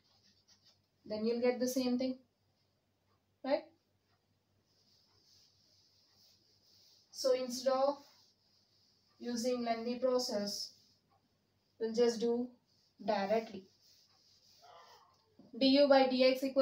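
A young woman speaks calmly and explains, close by.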